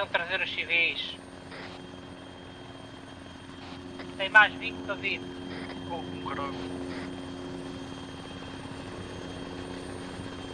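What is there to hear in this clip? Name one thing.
A helicopter's rotor drones steadily nearby.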